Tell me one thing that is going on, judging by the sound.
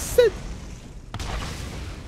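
Gunfire rattles.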